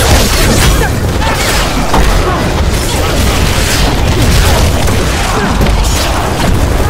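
Weapons strike bodies with heavy, repeated thuds.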